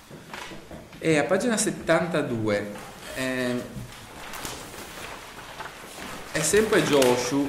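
A young man reads aloud calmly nearby.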